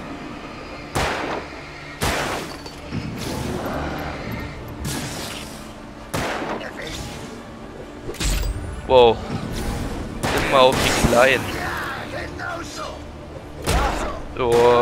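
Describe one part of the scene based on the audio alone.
Gunshots crack sharply now and then.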